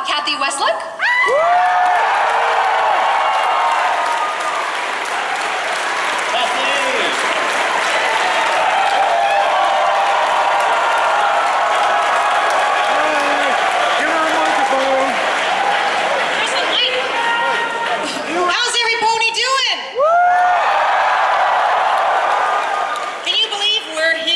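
A crowd cheers and applauds loudly in a large echoing hall.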